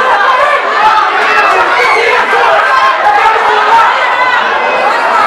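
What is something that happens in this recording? A crowd cheers and shouts loudly in an echoing hall.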